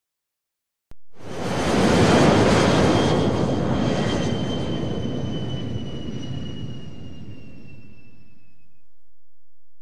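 A jet airliner roars overhead and fades into the distance.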